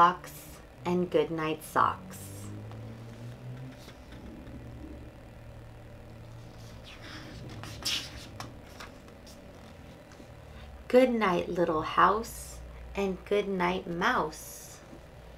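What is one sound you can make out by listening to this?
A young woman reads aloud calmly and close by.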